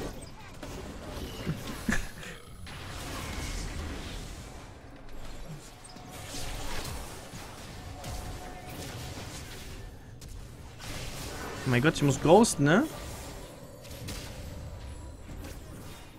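A man talks close to a microphone with animation.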